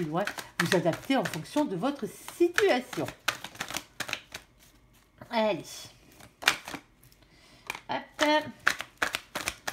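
Cards riffle and slap together as a deck is shuffled.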